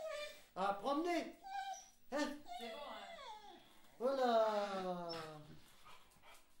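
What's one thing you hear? A dog howls and whines up close.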